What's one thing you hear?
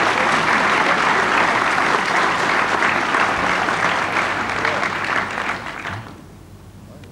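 An audience applauds loudly in a large hall, then the applause dies away.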